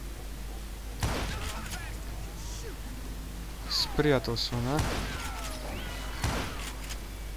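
Gunshots crack sharply, a few at a time.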